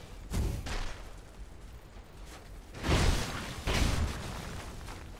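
An armoured figure swings a weapon through the air with loud whooshes.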